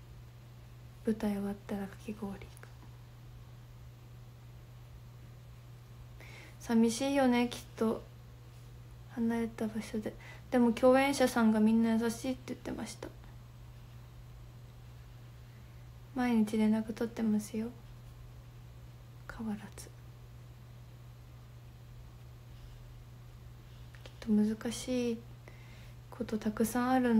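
A young woman speaks softly and close up, in short bursts with pauses.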